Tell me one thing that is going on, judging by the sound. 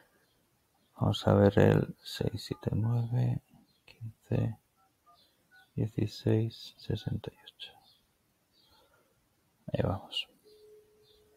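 A man speaks calmly and close to a microphone, in short bursts.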